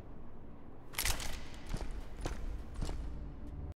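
Footsteps thud on a stone floor in an echoing hall.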